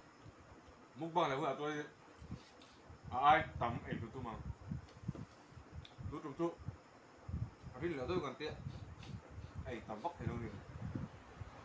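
Men talk nearby in short bursts.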